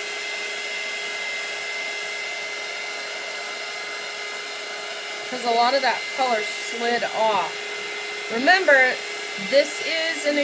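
A heat gun blows with a steady whirring hiss.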